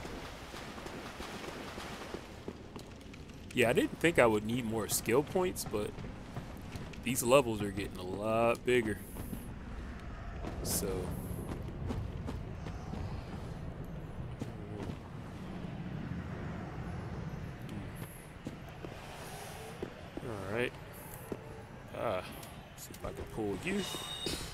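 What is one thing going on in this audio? Footsteps tread steadily on stone and dirt.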